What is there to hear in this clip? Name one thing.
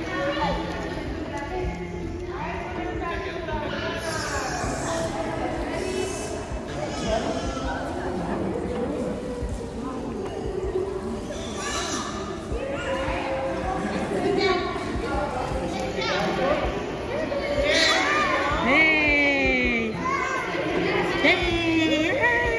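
Water splashes gently.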